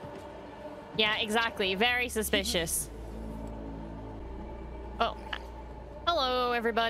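A young woman speaks casually and expressively into a close microphone.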